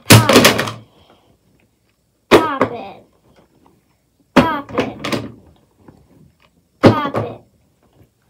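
Soft rubbery toys drop onto a wooden floor with light slaps.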